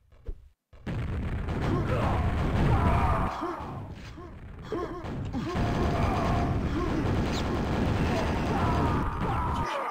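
Rockets explode with loud booms.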